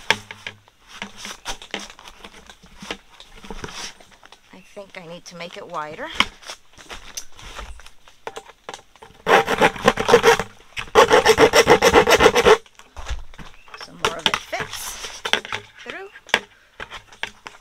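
A plastic bucket bumps and knocks as it is turned.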